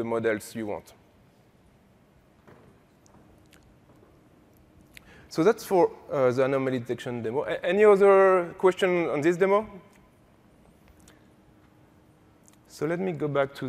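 A man speaks into a microphone in a large hall, presenting calmly.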